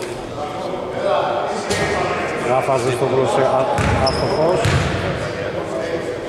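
Men shout and talk across a large echoing hall.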